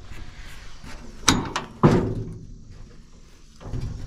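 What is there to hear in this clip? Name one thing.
A metal truck hood clanks and creaks open.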